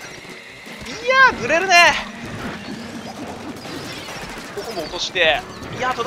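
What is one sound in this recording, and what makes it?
Bright video game chimes sweep up and down.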